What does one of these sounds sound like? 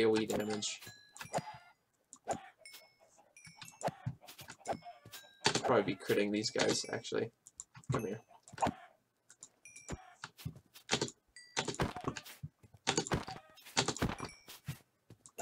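Game sound effects pop and click as chickens are struck.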